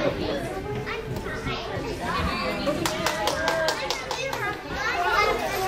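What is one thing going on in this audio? A woman talks encouragingly to a young child.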